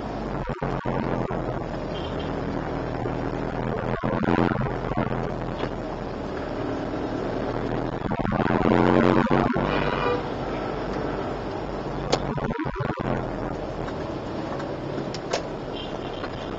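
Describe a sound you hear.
Motorbike engines buzz close by in traffic.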